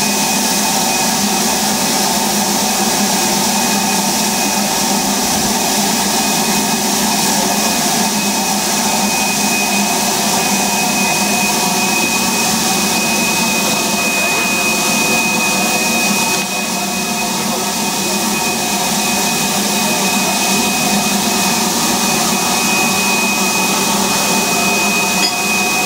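A steam locomotive idles with a steady hum and whine.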